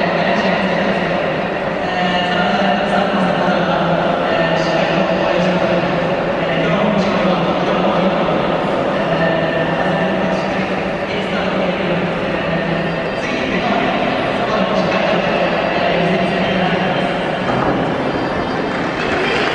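A young man speaks calmly into a microphone, heard over a stadium loudspeaker.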